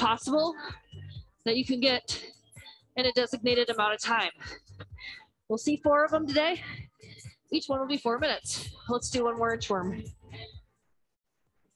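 A woman speaks clearly into a close microphone, giving instructions.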